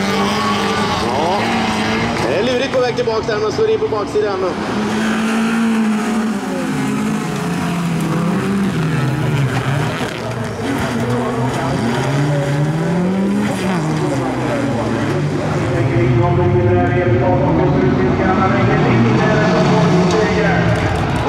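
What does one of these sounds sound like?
Race car engines roar and rev loudly.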